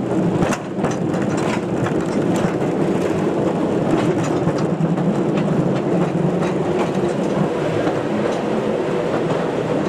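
A mine train rumbles and rattles steadily along its track.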